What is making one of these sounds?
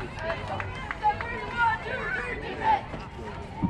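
Young women cheer and shout loudly in short bursts.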